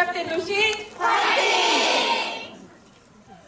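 An audience cheers and claps.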